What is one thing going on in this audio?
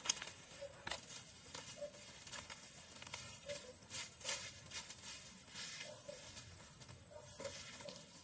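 Dry grass rustles and crackles as it is pulled by hand.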